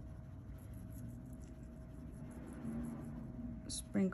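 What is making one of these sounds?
Fine glitter pours softly from a cup and patters onto a surface.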